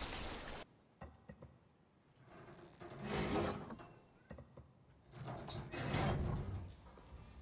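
A rusty metal wheel creaks and grinds as it turns.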